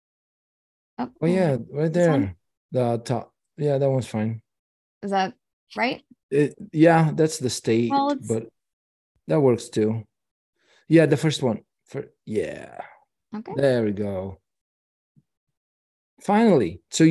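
A woman speaks casually over an online call.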